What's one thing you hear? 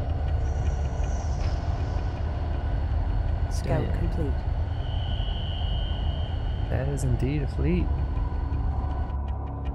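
Spaceship engines hum with a deep, steady rumble.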